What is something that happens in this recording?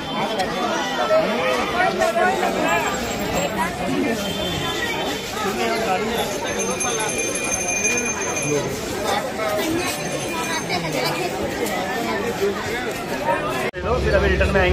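A busy crowd chatters and bustles outdoors.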